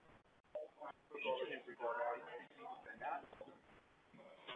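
A man speaks quietly into a phone.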